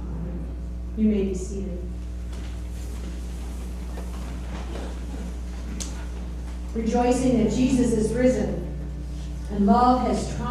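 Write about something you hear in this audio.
A man speaks calmly through a microphone in a large, echoing room.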